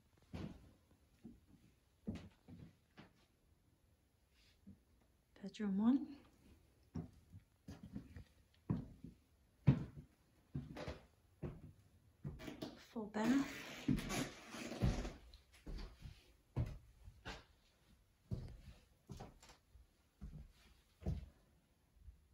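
Footsteps thud across a wooden floor.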